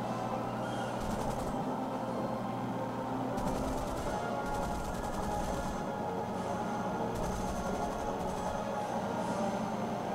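A propeller plane engine drones steadily.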